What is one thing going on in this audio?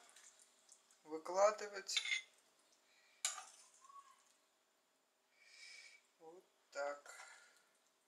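Food is set down softly on a plate.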